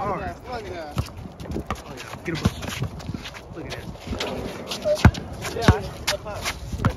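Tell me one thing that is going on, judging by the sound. A basketball bounces on concrete outdoors.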